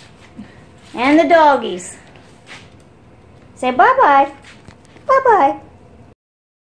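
A dog whines in short, rising and falling yelps.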